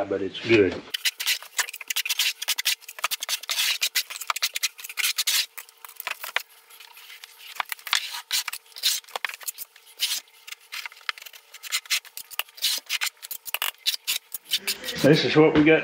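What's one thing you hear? A trowel scrapes and taps against a wall.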